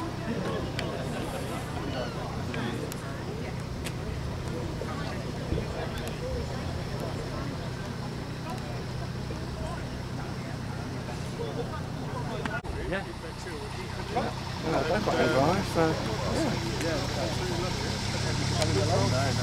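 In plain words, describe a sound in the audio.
Men and women chat in the background outdoors.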